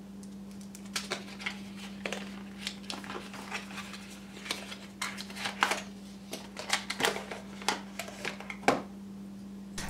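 Plastic packaging crinkles and rustles as it is unwrapped.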